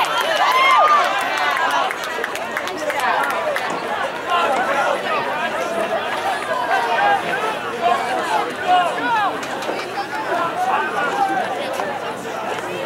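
Many people chatter in a noisy crowd.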